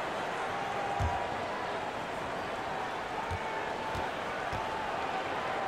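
A basketball bounces on a hard court a few times.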